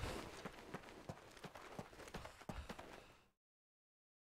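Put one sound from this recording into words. Footsteps crunch on dry grass and gravel.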